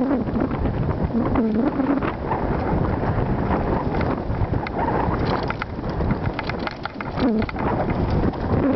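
Bicycle tyres crunch and rattle over a rocky dirt trail.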